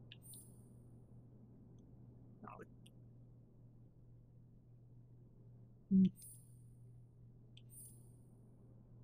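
Short soft menu chimes ring now and then.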